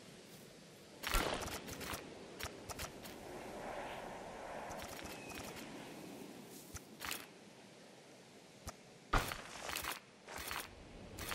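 Short clicking and thudding sounds mark paths being placed in a game.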